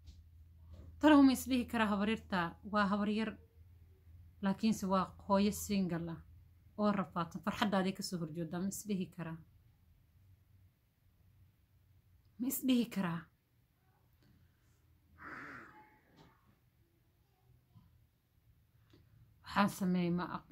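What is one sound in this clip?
A young woman speaks calmly and close by, with long pauses.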